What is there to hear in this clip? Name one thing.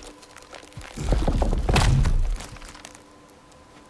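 A heavy tree trunk crashes and splinters as it falls.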